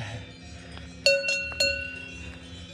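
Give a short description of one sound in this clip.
A cowbell clanks close by.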